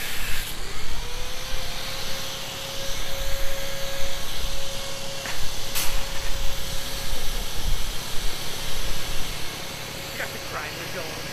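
A power tool whirs steadily up close.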